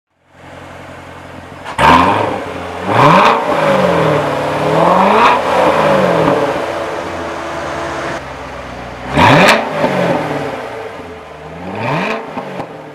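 A sports car engine idles with a deep rumble.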